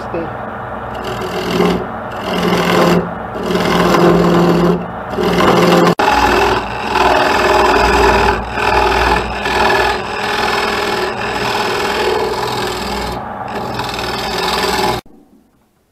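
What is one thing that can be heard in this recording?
A chisel scrapes and cuts against spinning wood in rough bursts.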